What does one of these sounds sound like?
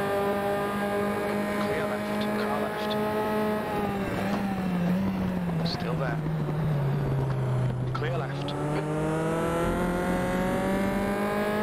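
A racing car engine whines steadily, its pitch dropping under braking and rising again as it speeds up.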